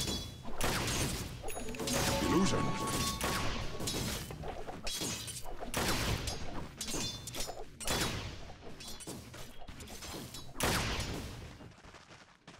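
Magic blasts and weapon hits crash in quick, loud bursts.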